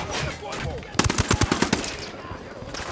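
Suppressed gunshots fire in a rapid burst.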